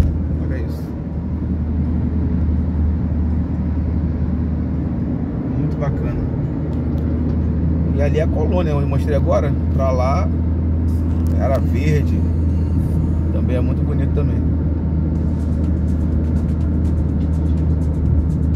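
Tyres rumble steadily on a motorway, heard from inside a moving car.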